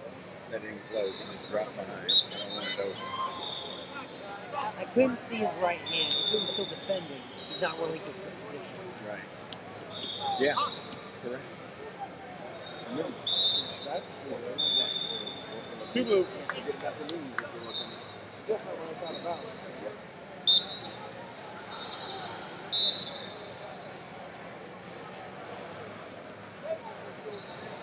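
Shoes squeak sharply on a mat.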